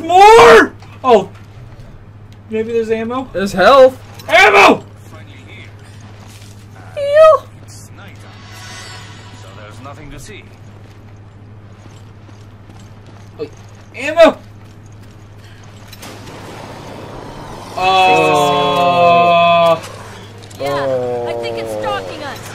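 Two young men talk and laugh with animation close to a microphone.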